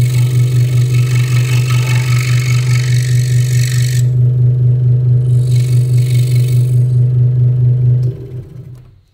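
A scroll saw hums and its blade chatters through wood.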